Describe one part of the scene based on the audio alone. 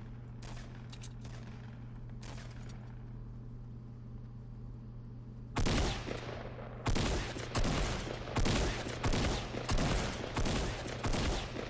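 Footsteps rustle through tall grass and bushes.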